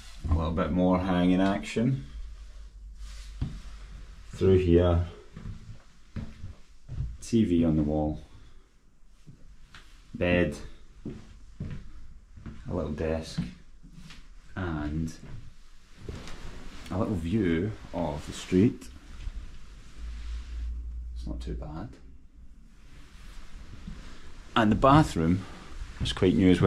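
A man talks calmly close to the microphone, pausing often.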